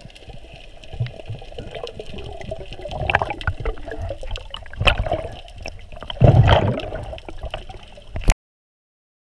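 Water swirls and gurgles in muffled bursts underwater.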